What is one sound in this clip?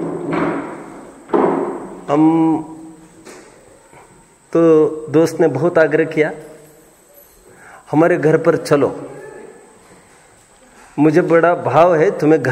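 A man chants slowly and calmly nearby, in long drawn-out phrases with pauses between them.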